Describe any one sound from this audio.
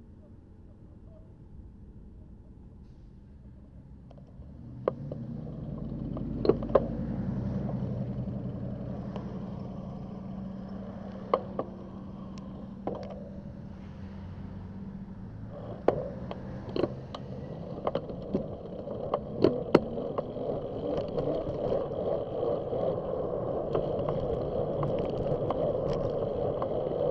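Wind rushes past a moving bicycle.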